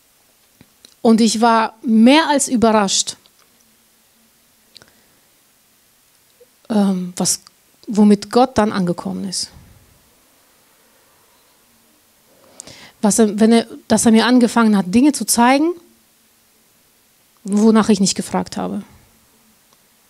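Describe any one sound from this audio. A middle-aged woman speaks calmly into a microphone, in short phrases with pauses.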